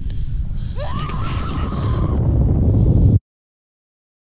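A young woman cries out as she falls.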